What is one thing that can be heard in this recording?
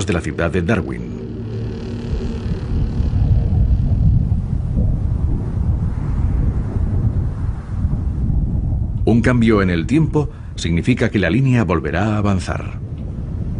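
Wind blows hard outdoors, rumbling low.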